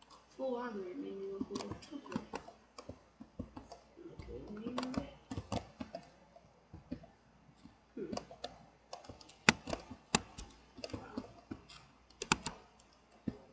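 Leaf blocks break with quick, soft crunching taps.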